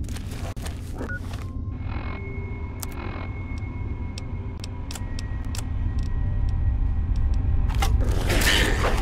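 Electronic menu clicks and beeps sound now and then.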